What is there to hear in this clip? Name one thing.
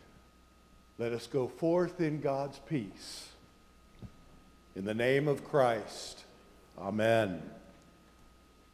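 An older man chants loudly through a microphone in an echoing hall.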